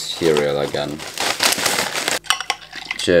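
Cornflakes rattle as they pour into a mug.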